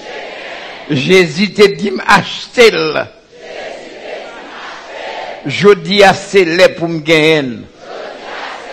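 An elderly man preaches loudly through a microphone in short bursts.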